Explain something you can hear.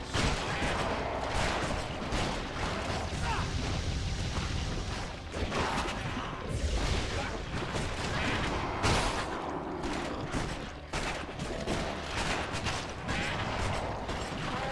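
Weapons strike with sharp, rapid impacts.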